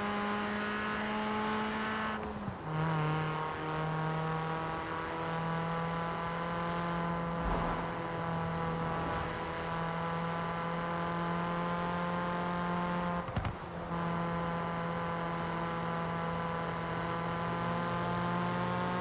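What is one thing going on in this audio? A car engine revs loudly and steadily, dropping briefly at each gear change.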